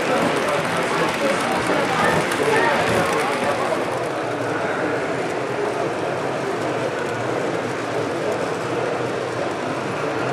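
Model train wagons clatter along the track.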